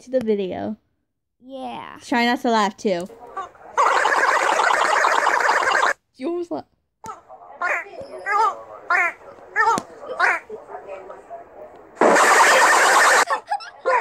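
A rubber squeeze toy squeals shrilly each time it is pressed.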